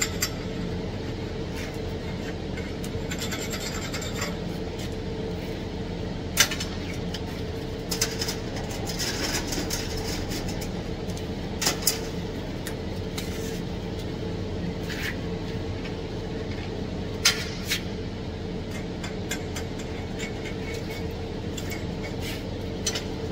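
A ventilation fan hums steadily.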